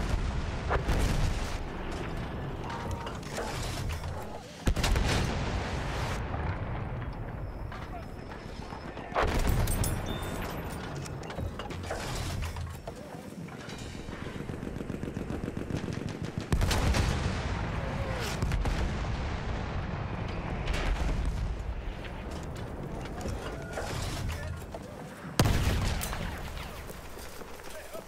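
Explosions boom heavily and rumble away.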